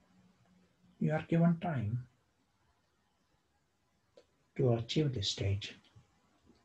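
An older man speaks calmly and closely into a microphone, in short phrases.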